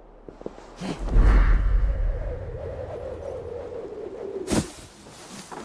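Air rushes past as a figure dives from a great height.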